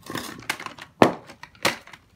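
A plastic bottle is set down on a wooden block with a short knock.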